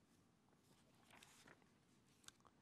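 Paper rustles as a man handles a sheet.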